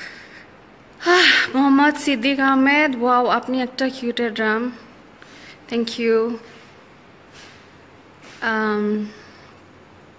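A young woman talks close to the microphone, in short bursts with pauses.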